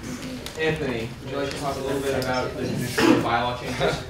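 A young woman speaks to the group.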